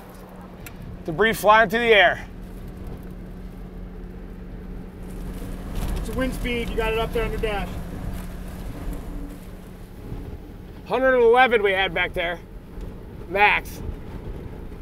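Men talk with animation inside a car.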